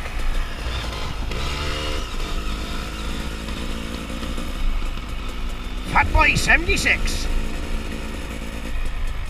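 A dirt bike engine revs and fades as the bike rides away.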